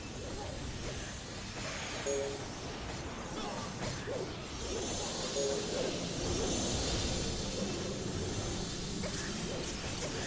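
Game spell effects crackle and boom in a battle.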